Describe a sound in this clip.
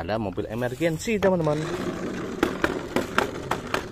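A toy car is set down on a plywood board.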